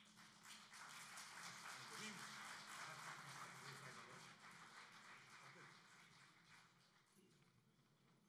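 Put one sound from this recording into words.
Bells on wooden staffs jingle and rattle.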